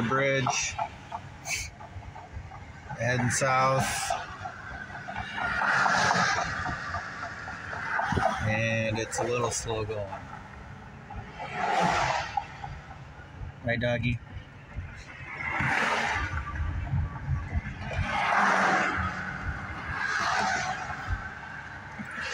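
A car drives along a highway, its tyres rumbling on the road.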